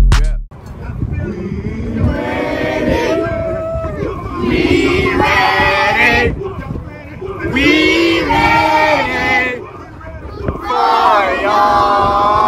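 A group of young boys chant and shout together loudly outdoors.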